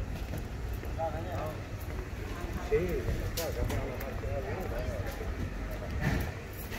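Men talk nearby in casual voices.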